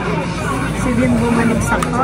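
A spoon clinks against a mug.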